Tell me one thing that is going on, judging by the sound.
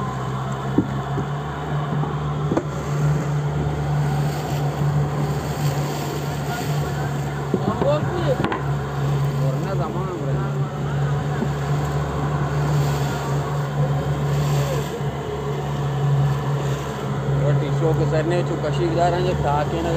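Wind blows across the open sea.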